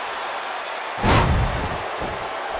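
A body slams hard onto a wrestling mat with a loud thud.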